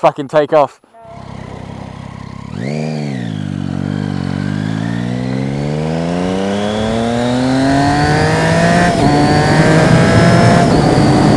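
A motorcycle engine revs and rises in pitch as the bike speeds up.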